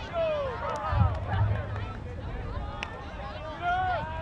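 A crowd of people cheers and shouts outdoors.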